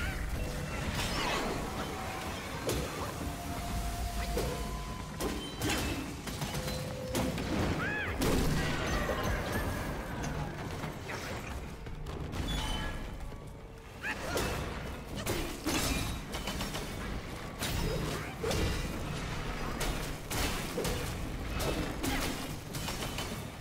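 Sword blows clash and strike with sharp impacts.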